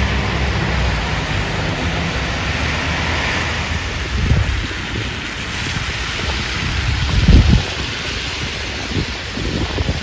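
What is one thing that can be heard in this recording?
Car tyres hiss on a wet road nearby.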